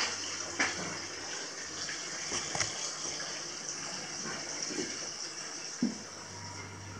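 Water pours from a spout into a full bath.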